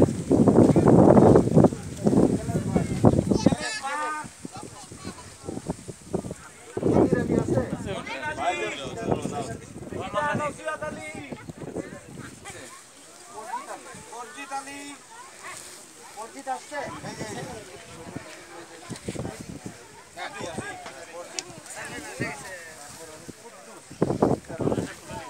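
A crowd of men talks and murmurs outdoors nearby.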